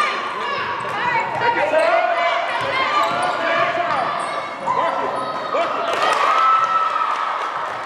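Young players call out to each other.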